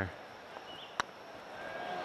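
A putter taps a golf ball with a short click.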